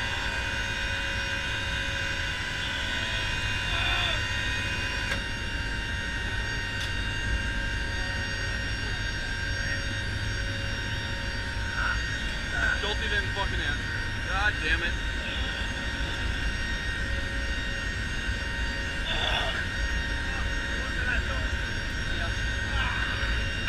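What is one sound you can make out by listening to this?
Aircraft engines drone loudly and steadily.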